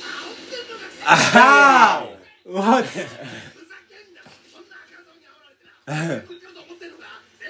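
Young men laugh loudly together.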